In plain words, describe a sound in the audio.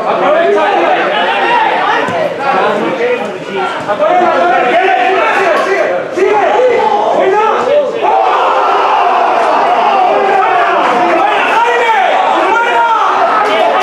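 Young men shout and call out to each other outdoors, some close and some farther off.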